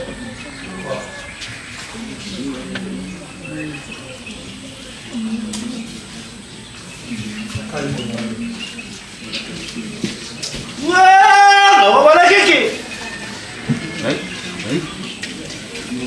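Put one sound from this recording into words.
Men talk quietly at a distance.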